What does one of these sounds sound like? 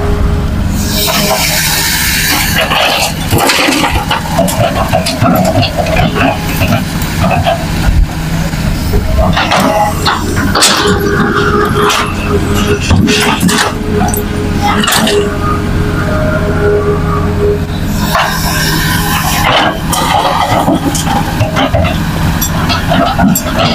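Soil and rocks pour from an excavator bucket into a dump truck bed.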